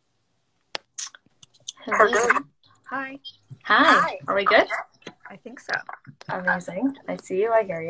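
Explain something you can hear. A young woman talks cheerfully over an online call.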